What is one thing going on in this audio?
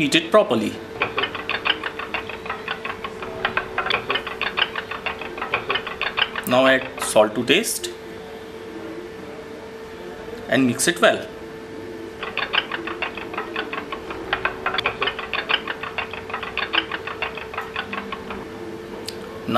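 A metal spoon clinks rapidly against a metal bowl while stirring.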